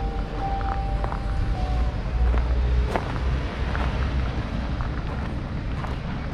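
Wind rumbles softly outdoors.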